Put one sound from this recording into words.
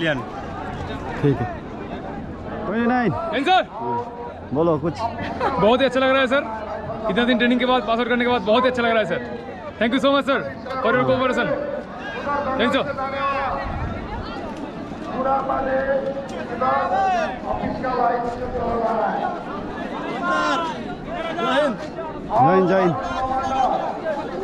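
A crowd murmurs in the open air.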